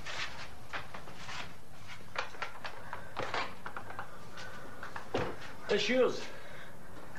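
A young man speaks tensely nearby.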